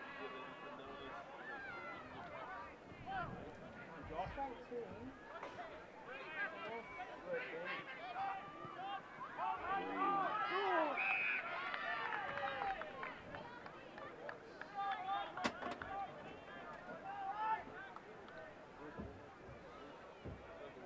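Players and spectators shout and call out outdoors.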